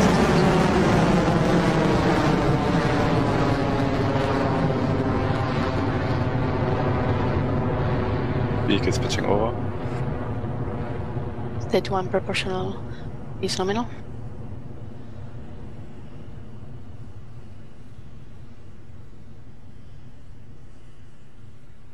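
A rocket engine roars steadily and slowly fades as it climbs away.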